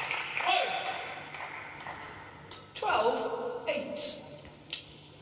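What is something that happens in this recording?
A young woman shouts loudly in a large echoing hall.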